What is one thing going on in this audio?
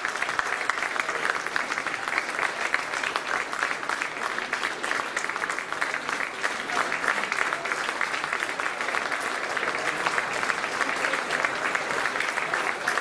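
An audience applauds in an echoing hall.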